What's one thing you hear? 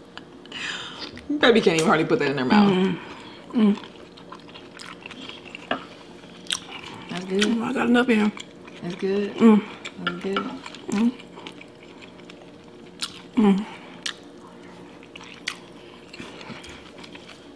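A woman chews and smacks her lips close by.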